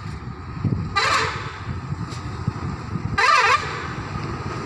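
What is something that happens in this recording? A truck horn blares twice, loud and close.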